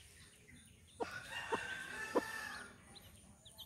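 Chicks peep in high, thin chirps.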